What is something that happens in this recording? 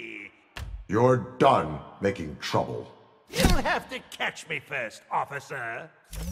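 A man speaks with a mocking, playful voice.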